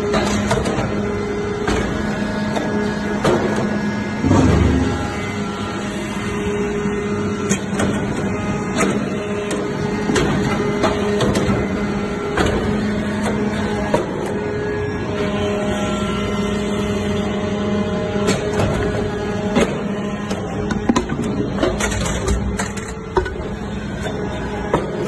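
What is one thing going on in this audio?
A hydraulic machine hums steadily and loudly.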